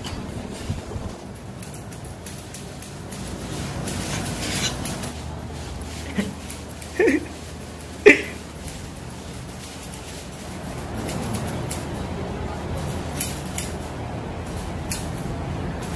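Scissors snip at hair close by.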